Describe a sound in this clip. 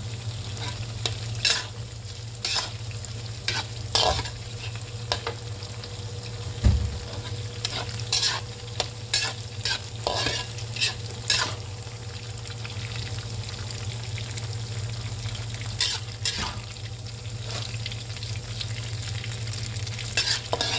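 A metal spatula scrapes and clinks against a pan as food is stirred.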